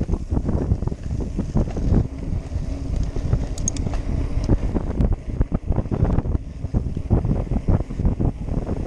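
Bicycle tyres roll and bump over a rough dirt track.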